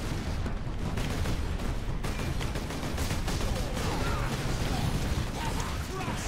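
Heavy explosions boom and rumble.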